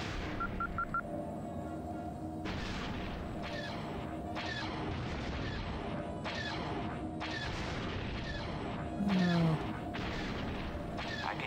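A spacecraft engine hums steadily.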